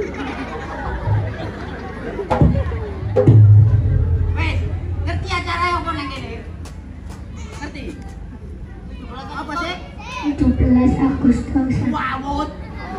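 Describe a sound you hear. Drums thump loudly.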